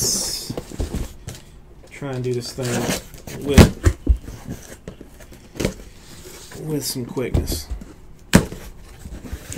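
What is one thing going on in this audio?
Cardboard boxes thump and knock as they are handled.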